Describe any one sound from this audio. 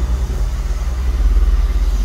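Footsteps shuffle on a concrete floor.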